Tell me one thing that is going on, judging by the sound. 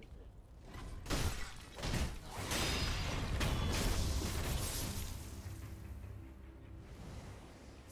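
A sword swishes and slashes with heavy thuds.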